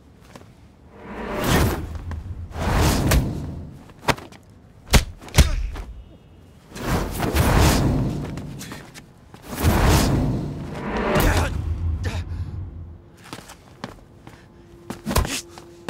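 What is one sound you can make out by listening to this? Punches and blows land with sharp thuds and whooshes.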